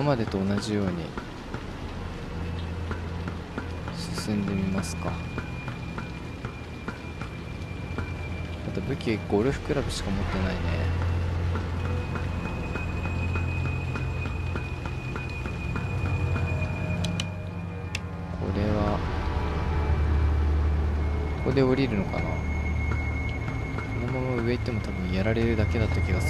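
Footsteps clang on metal stairs at a steady pace.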